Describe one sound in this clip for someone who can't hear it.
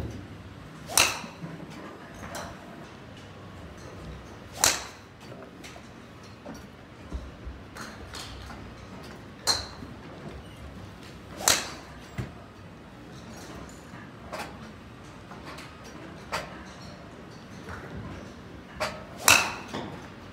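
A golf club strikes a ball with a sharp crack, now and then.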